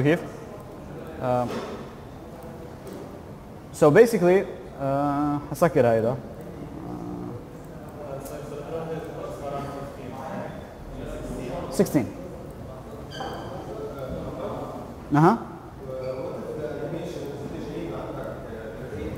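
A man speaks calmly through a microphone, as if giving a lecture.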